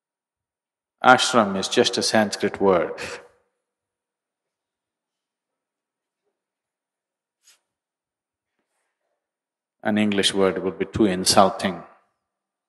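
An elderly man speaks calmly into a microphone, with long pauses.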